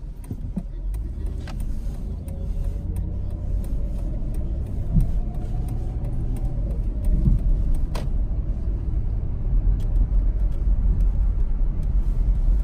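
Tyres rumble on a wet road.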